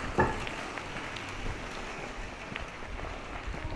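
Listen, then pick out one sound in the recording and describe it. A bicycle rolls past on the road.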